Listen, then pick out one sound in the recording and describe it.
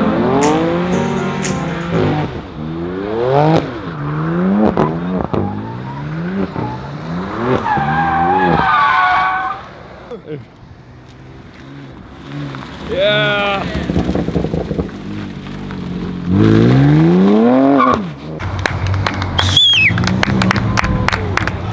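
A car engine revs hard, rising and falling in pitch over and over.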